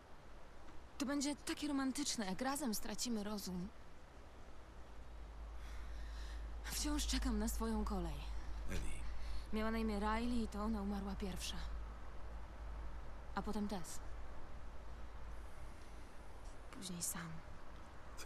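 A young girl speaks quietly and calmly, close by.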